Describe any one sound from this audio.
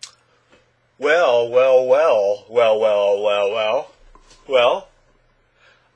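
A young man sings loudly, close to the microphone.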